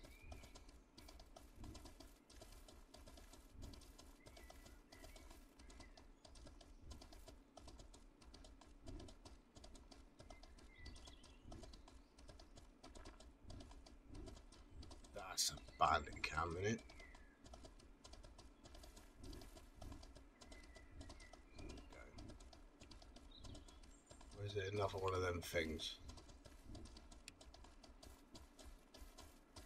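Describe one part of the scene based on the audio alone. Horse hooves thud steadily on soft ground at a trot.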